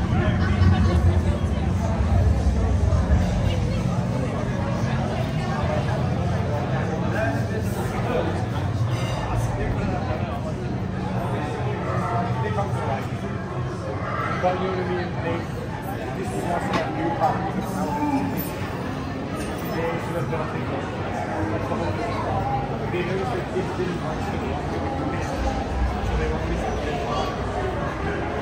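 A crowd chatters and murmurs all around, outdoors.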